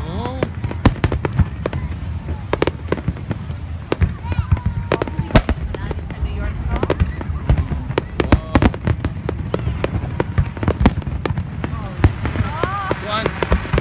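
Fireworks burst and crackle with sharp bangs throughout.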